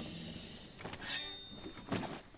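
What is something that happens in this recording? A heavy blade swings with a sharp metallic ring.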